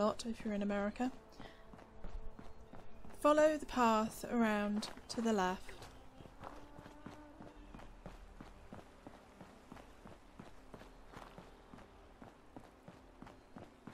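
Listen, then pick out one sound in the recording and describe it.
Footsteps tap steadily on hard stone.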